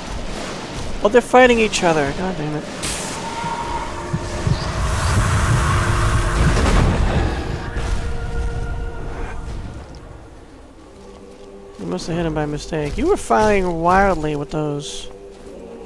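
A creature lets out wailing cries.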